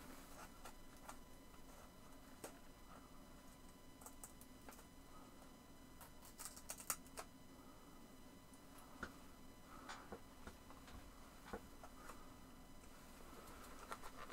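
Small objects click and knock on a desk.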